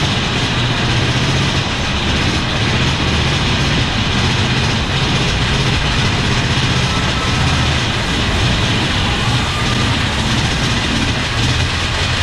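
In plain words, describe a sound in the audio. A roller coaster train rattles and rumbles along its track.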